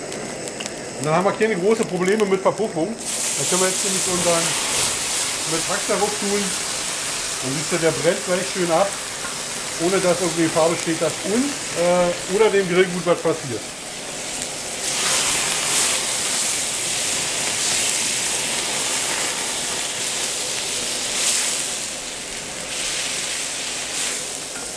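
Meat sizzles loudly in a hot pan.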